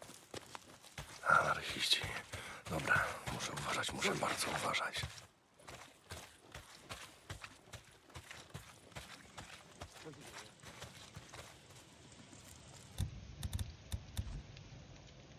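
Footsteps crunch on frozen ground and brush.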